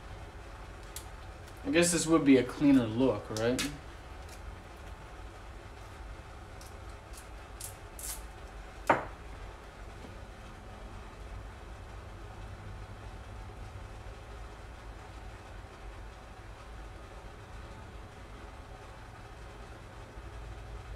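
Small parts click and tap under a man's hands.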